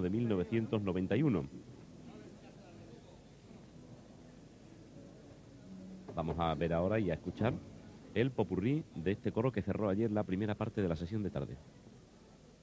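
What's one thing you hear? A large male choir sings loudly in unison.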